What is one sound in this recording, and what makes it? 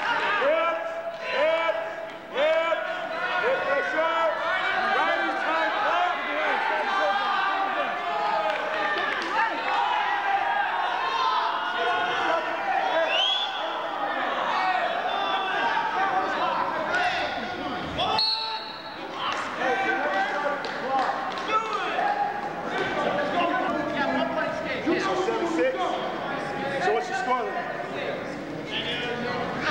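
A crowd of spectators shouts and cheers throughout, echoing in a large hall.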